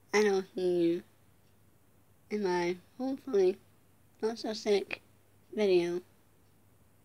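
A young woman speaks close up in short bursts, with pauses in between.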